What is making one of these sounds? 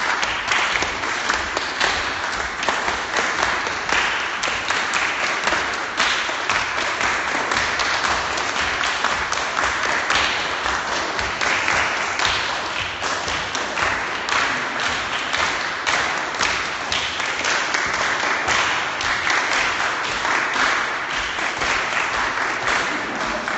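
A crowd of people claps hands in rhythm.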